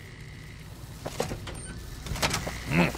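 A door opens with a creak.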